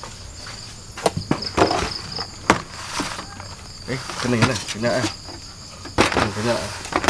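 A portable gas stove's lid clicks and clatters as it is opened.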